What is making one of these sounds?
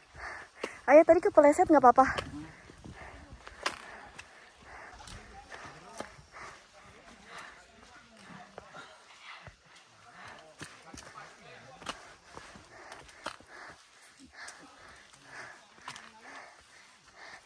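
Footsteps crunch steadily on a damp dirt path.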